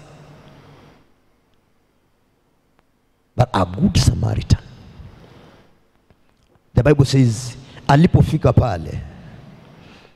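A man preaches forcefully into a microphone, his voice echoing in a hall.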